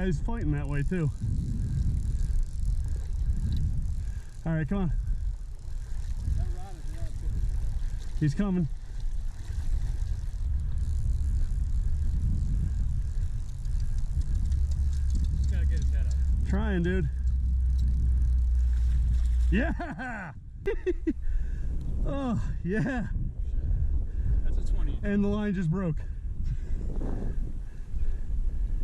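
A shallow river flows around a man's wading legs.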